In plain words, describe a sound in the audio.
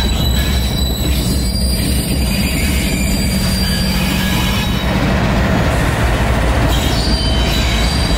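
Train wheels clatter along the rails.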